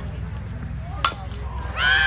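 A softball smacks sharply into a catcher's mitt.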